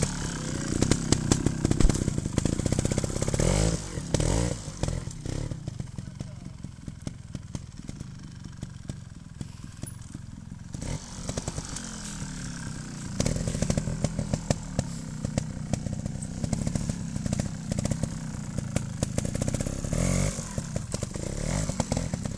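A motorcycle engine pops and revs close by.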